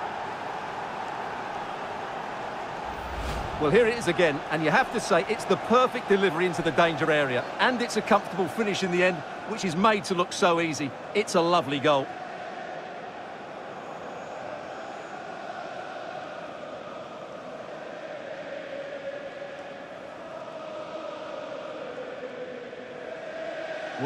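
A large crowd roars and murmurs steadily in a stadium.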